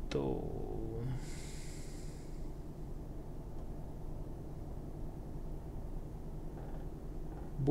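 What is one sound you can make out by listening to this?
A truck rolls along a road with a steady rumble of tyres.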